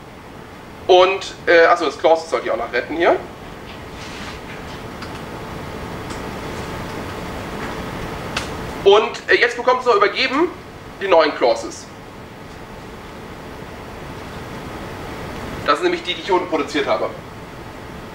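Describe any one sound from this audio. A man speaks calmly in short bursts.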